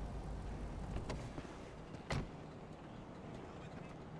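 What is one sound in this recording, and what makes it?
A car door shuts.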